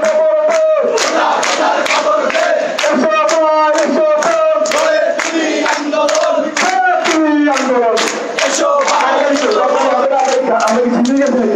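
Hands clap in rhythm with the chant.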